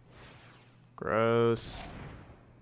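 A bright electronic tone rings out briefly.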